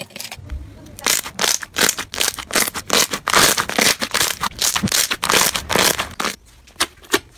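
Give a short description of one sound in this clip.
Hands squeeze wet slime, making crackling, popping bubble sounds.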